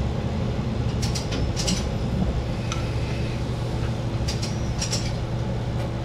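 Train wheels clack over rail joints in quick pairs.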